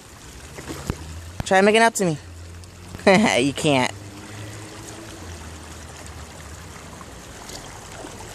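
An animal splashes as it swims in water.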